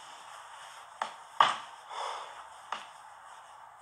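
Hands rustle and knock against an object close by.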